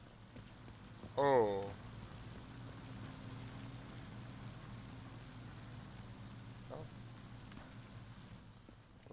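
Footsteps crunch slowly on wet ground.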